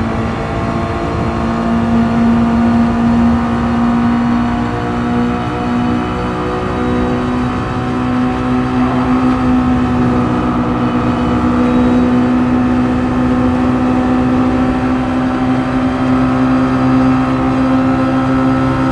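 Other racing car engines buzz close by.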